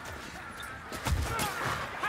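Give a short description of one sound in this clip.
A sword swings and strikes flesh with a heavy thud.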